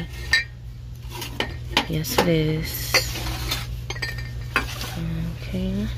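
Ceramic mugs clink against each other and a metal shelf as they are handled.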